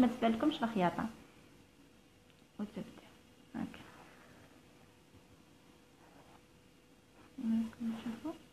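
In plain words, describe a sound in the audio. Satin fabric rustles softly as thread is pulled through it.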